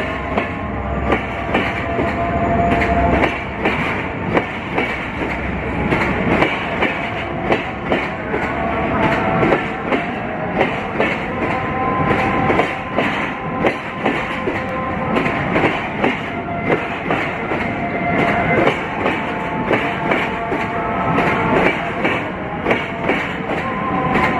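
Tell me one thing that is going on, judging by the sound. Metal wheels squeal faintly against the rails.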